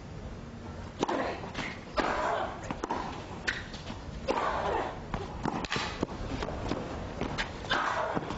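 A tennis ball is struck back and forth with sharp pops of the racket.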